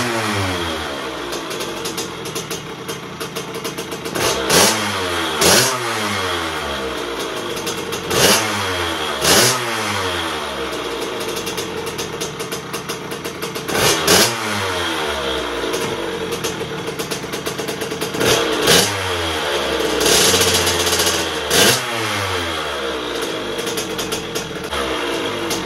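A small motorcycle engine idles loudly and unevenly nearby.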